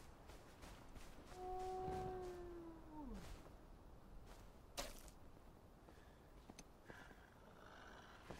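Footsteps run through tall grass.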